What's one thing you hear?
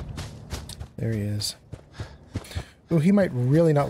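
An elderly man talks with animation close to a microphone.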